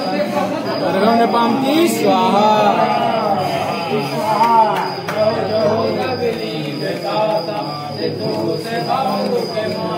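A group of women chant together in a steady, sing-song tone.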